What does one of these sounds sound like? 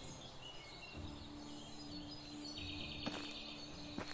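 Footsteps crunch slowly on a dirt path.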